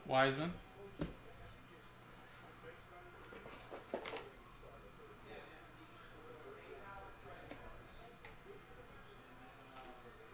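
Trading cards rustle and click as they are handled.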